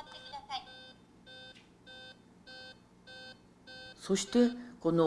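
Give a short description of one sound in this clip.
A handheld electronic device beeps in a steady, even rhythm.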